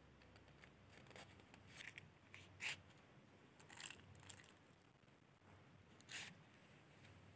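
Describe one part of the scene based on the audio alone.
A matchbox slides open and shut with soft scraping.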